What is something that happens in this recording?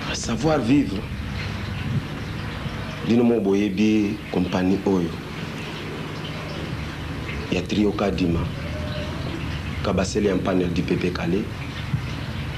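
A young man speaks calmly, close up.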